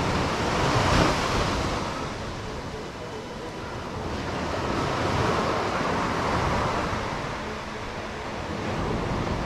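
Waves wash onto a beach in surges.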